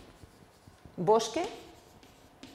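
A woman speaks a few words nearby.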